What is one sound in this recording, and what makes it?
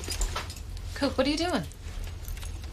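A young woman speaks briefly in a low voice nearby.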